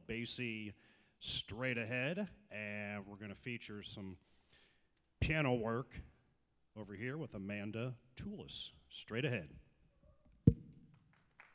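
A man speaks to an audience over a loudspeaker in a large hall.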